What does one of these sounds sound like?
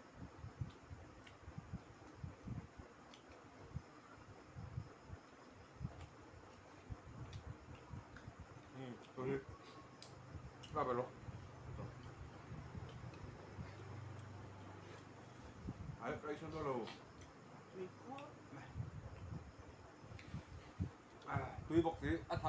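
Men chew and smack their lips while eating close by.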